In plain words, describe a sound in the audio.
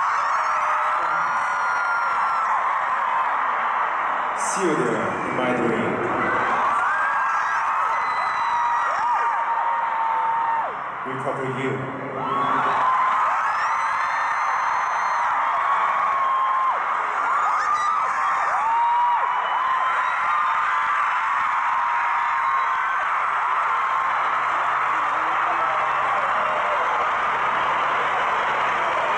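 A large crowd screams and cheers loudly in a big echoing arena.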